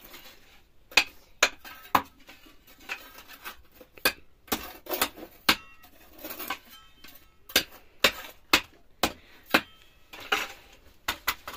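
A hammer knocks on wood with sharp blows.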